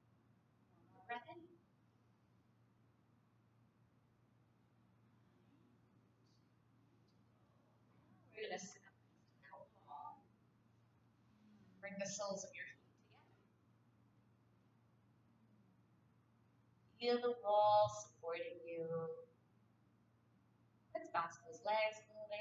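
A woman speaks calmly and slowly, with long pauses.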